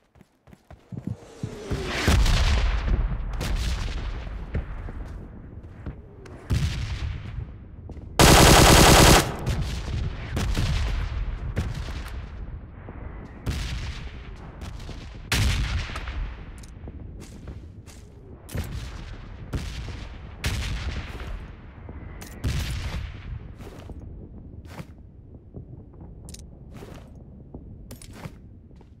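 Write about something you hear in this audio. Gunshots crack and echo, one after another.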